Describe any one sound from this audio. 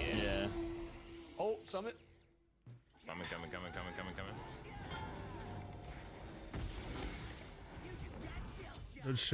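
Magic blasts and whooshes ring out in a video game.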